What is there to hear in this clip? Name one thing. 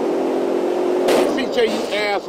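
A car crashes into another car with a metal scrape.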